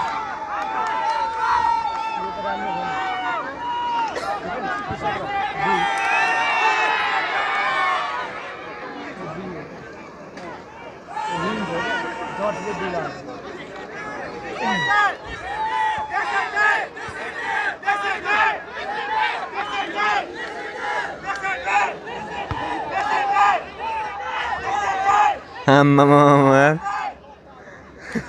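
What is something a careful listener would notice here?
A crowd of spectators talks and shouts outdoors, with voices of men and women close by.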